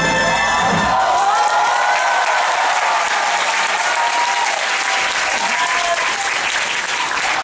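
A large audience cheers and applauds loudly.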